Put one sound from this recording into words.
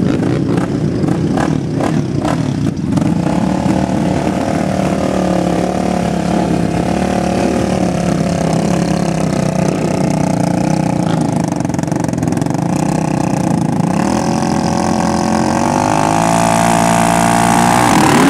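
A quad bike engine idles and revs loudly close by.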